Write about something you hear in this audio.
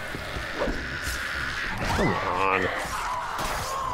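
Heavy blows thud into a body.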